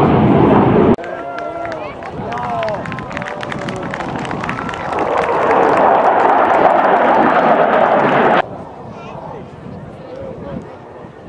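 A crowd of onlookers chatters and calls out outdoors.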